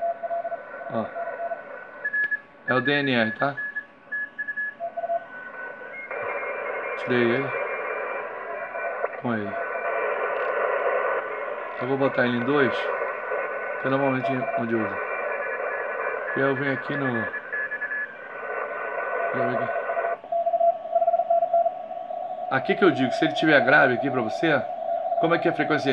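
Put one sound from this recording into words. A radio receiver gives out short beeping tones.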